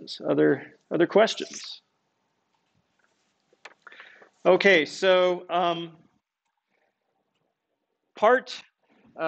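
A middle-aged man speaks calmly and clearly through a microphone, in short phrases with pauses.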